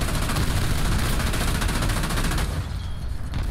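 Explosions and gunfire crackle loudly.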